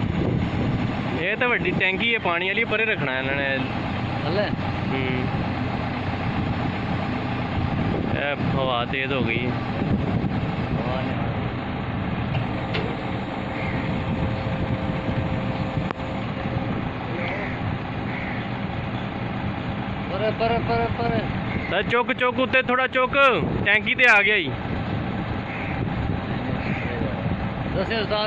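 A crane's engine hums steadily nearby.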